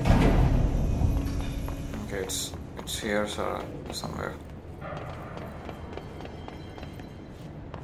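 Footsteps hurry across a hard floor.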